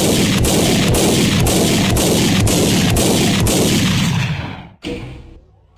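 Explosions roar and rumble loudly, then die away.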